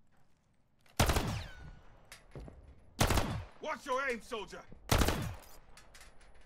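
Gunshots ring out in loud, single bursts.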